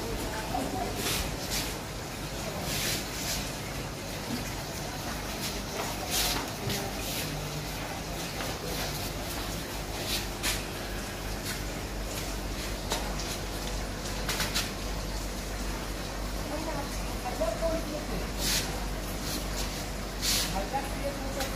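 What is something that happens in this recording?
Glass panes clink and knock against each other.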